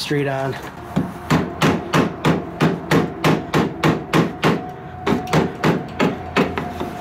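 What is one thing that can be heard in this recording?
A hand tool knocks and scrapes against metal in a quick, steady rhythm.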